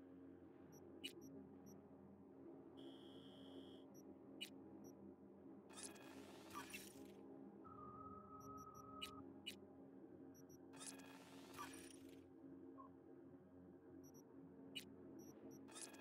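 Short menu clicks and beeps sound now and then.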